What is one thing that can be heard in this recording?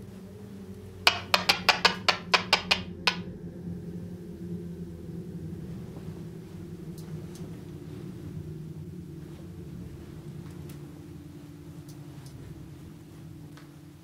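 A man speaks quietly, close by.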